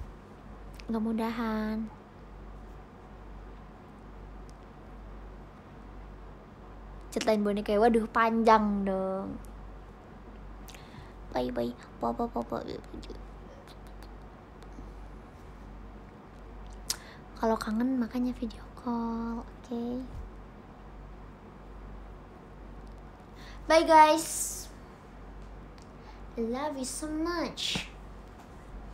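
A young woman speaks playfully and close to the microphone, in short bursts with pauses.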